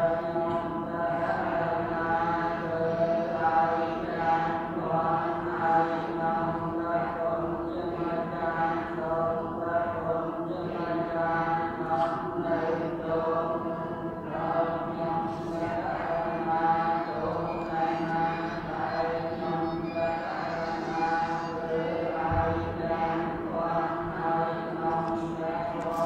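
An elderly man chants in a low, steady voice close by.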